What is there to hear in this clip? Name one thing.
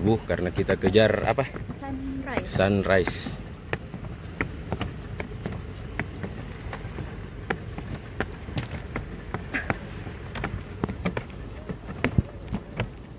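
Footsteps thud on wooden steps as people climb.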